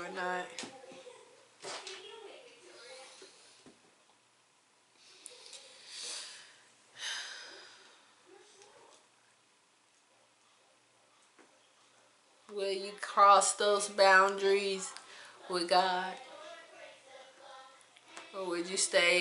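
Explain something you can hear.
A young woman speaks calmly and close by, with pauses.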